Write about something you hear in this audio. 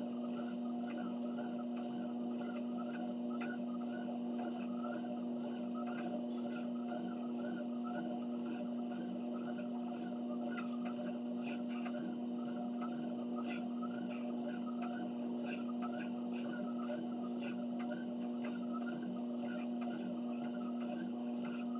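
Footsteps thud in a quick, even rhythm on a treadmill belt.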